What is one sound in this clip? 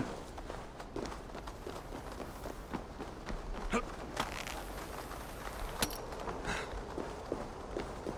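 Footsteps thud quickly up stairs.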